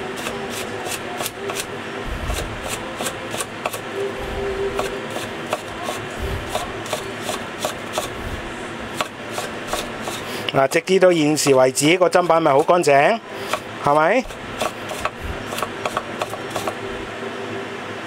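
A cleaver chops rapidly against a wooden board.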